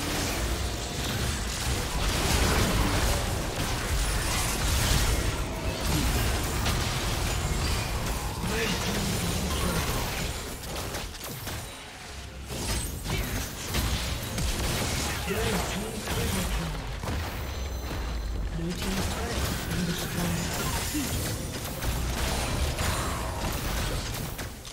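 Magic blasts, zaps and explosions crackle in a busy fight.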